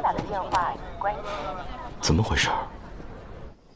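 A young man asks a question in puzzlement.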